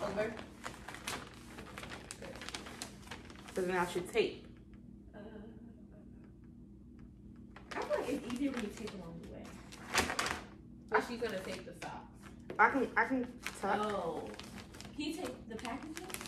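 Wrapping paper crinkles and rustles.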